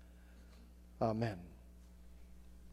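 A man speaks briefly through a microphone in a large echoing hall.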